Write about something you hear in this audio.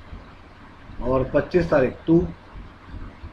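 A young man speaks calmly and briefly, close to a microphone.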